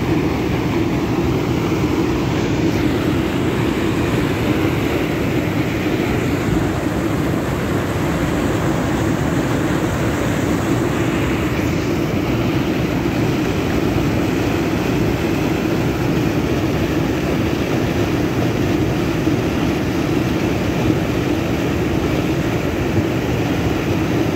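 Water thunders steadily over a weir and churns into foam below.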